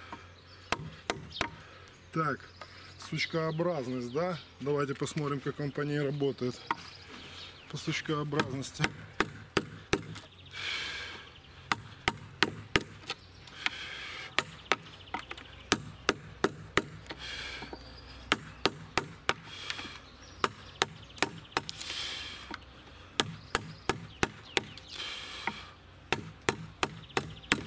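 A mallet strikes a chisel into wood with sharp, steady knocks.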